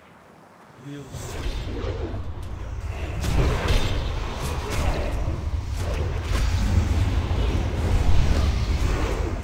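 Magic spells blast and crackle loudly during a battle.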